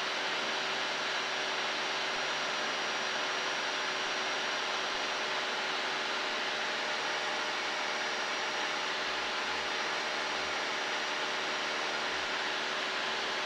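A small plane's engine drones loudly and steadily inside the cabin.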